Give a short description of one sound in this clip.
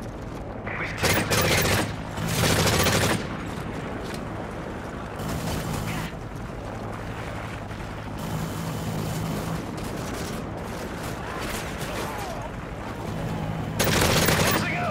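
A submachine gun fires in bursts.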